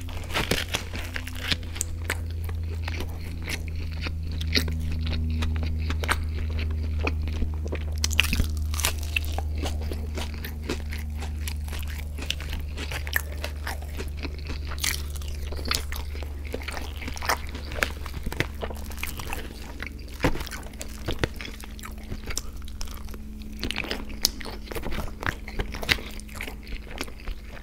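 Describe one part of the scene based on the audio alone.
A man chews food wetly and loudly, close to a microphone.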